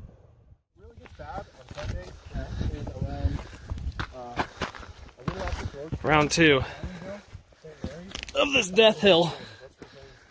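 Footsteps crunch on snowy, stony ground.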